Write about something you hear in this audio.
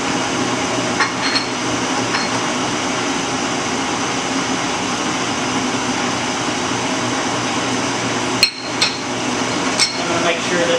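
Metal tools clink and knock against metal now and then.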